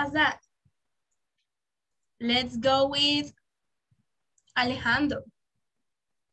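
A woman speaks calmly over an online call, in short phrases.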